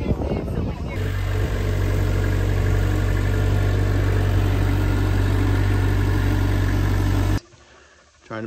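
A forklift engine hums steadily.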